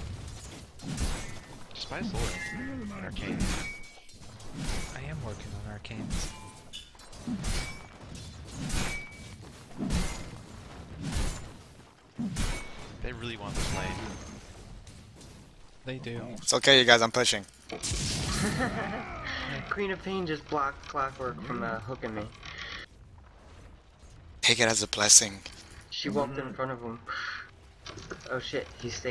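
Weapons clash and spells burst in a fantasy battle.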